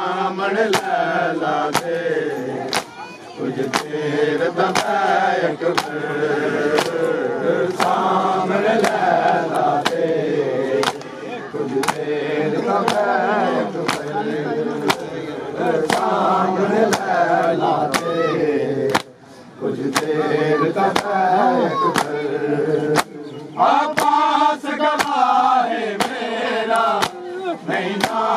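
A crowd of men chants loudly in unison, close by.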